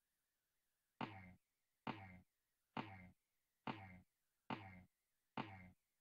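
A video game character's jump sound effect plays again and again.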